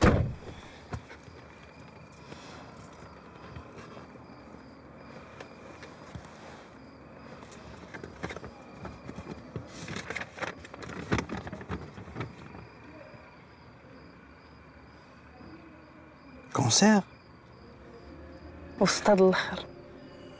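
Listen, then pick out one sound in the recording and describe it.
A woman speaks quietly and close by.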